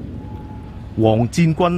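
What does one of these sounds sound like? A man speaks loudly in an echoing hall.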